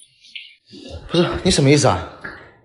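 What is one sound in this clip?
A man speaks with a raised, questioning voice.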